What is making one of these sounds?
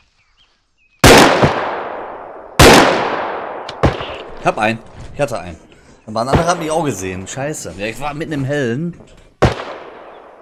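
A gun fires loud single shots that ring out.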